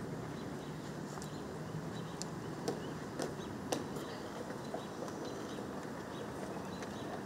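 Hard-soled shoes step on stone paving outdoors.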